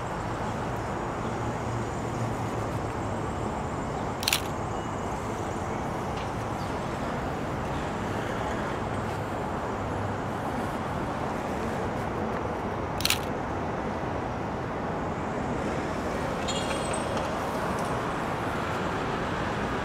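Traffic rumbles steadily nearby outdoors.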